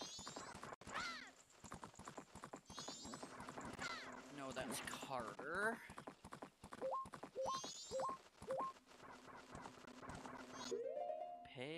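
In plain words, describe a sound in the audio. Horse hooves gallop quickly and steadily.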